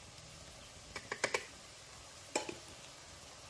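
Chopsticks tap against a frying pan.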